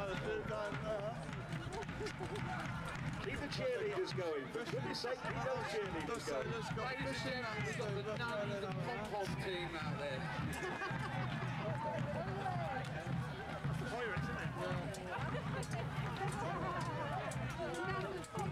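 A large crowd of men shouts and yells.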